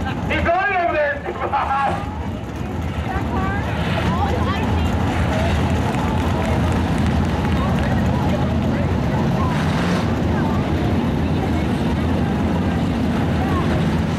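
Race car engines rumble steadily nearby.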